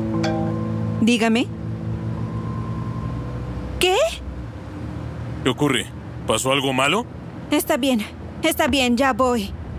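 A young woman talks on a phone close by.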